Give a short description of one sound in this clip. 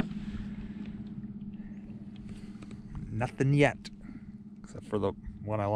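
Small waves lap softly against a kayak's hull.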